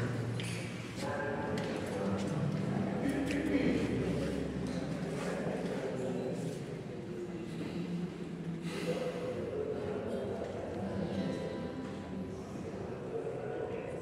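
A flute plays a melody.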